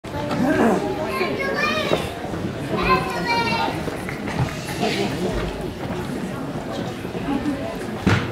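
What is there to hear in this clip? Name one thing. Children's voices chatter and call out in a large echoing hall.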